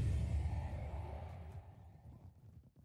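A burst of fire crackles and fades.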